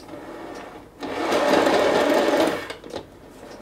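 A plastic turntable spins quickly with a loud whirring rush.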